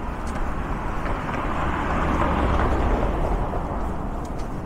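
A car drives past on the street.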